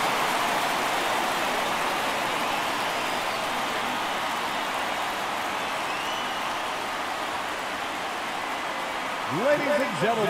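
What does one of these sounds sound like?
A crowd cheers and murmurs steadily in a large stadium.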